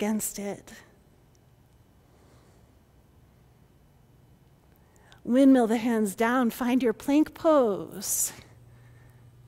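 A woman speaks calmly and clearly into a close microphone, giving instructions.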